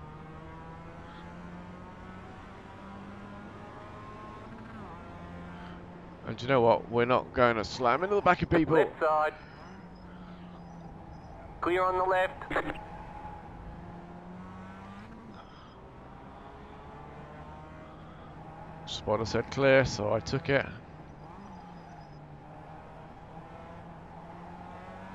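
A racing car engine hums steadily.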